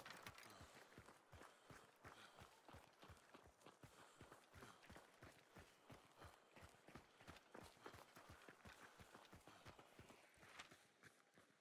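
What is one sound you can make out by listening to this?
Footsteps crunch quickly over dry grass and dirt.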